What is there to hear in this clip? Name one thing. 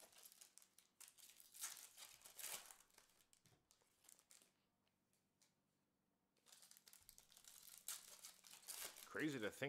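Paper wrappers rustle and crinkle close by.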